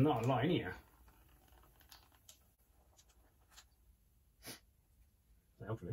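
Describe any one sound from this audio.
Oil trickles and splashes into a metal pan.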